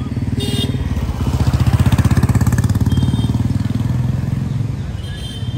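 A motorbike engine idles close by.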